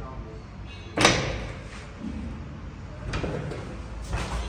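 An elevator door slides open.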